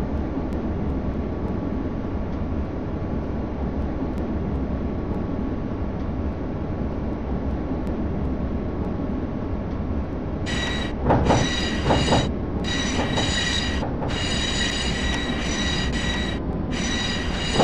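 A tram rumbles steadily along rails.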